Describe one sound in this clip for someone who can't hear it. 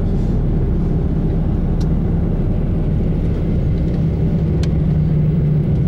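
Wind rushes past the moving vehicle.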